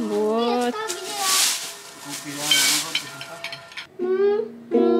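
A rake scrapes through leaves on grass.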